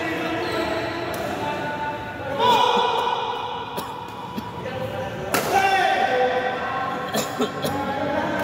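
Rackets strike a shuttlecock back and forth in an echoing hall.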